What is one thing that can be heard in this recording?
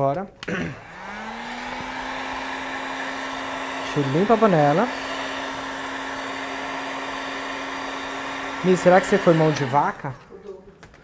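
A heat gun blows with a steady whir.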